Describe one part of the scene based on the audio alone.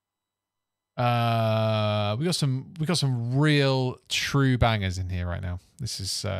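A man plays notes on an electric keyboard.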